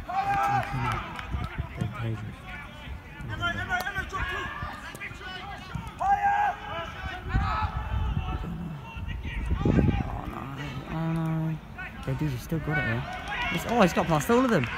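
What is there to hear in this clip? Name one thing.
Football players shout to each other across an open pitch outdoors.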